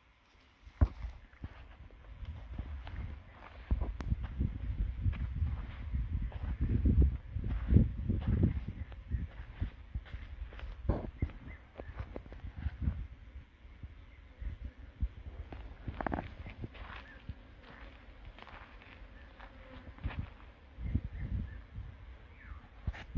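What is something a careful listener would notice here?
Dry sticks rustle and clatter as they are handled.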